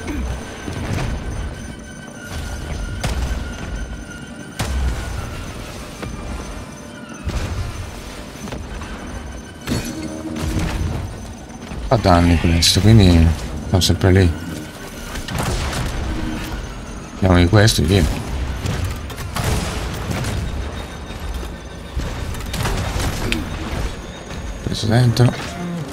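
An elderly man talks with animation into a microphone.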